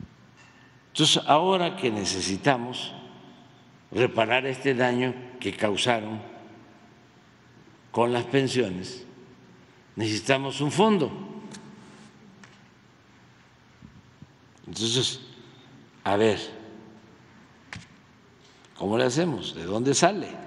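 An elderly man speaks calmly into a microphone, in bursts with pauses.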